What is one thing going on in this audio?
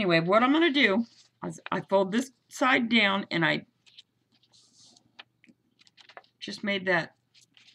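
Paper rustles and slides as it is folded.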